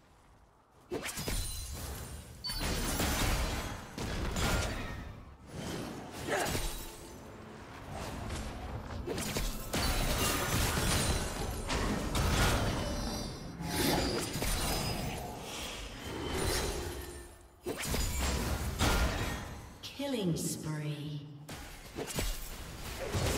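Fast game combat sounds of spells blasting and hits landing play loudly.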